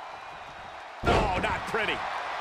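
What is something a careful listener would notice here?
A body slams onto a wrestling ring mat.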